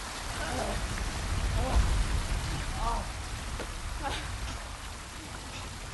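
A young man gasps and pants heavily.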